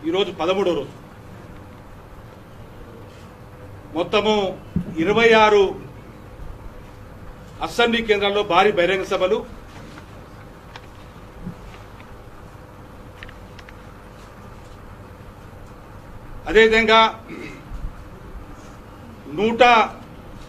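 A middle-aged man speaks forcefully into microphones in short bursts with long pauses.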